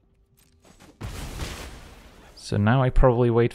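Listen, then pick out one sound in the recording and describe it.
A fiery game effect bursts with a rushing whoosh.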